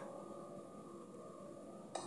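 Fingertips tap lightly on a touchscreen.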